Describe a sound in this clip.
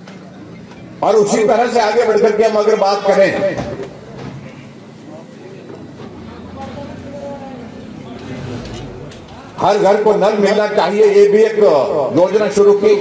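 An elderly man speaks forcefully into a microphone over a loudspeaker.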